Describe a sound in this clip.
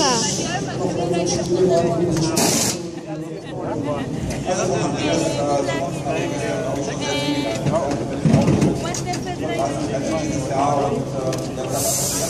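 Several men talk at once, close by and with animation.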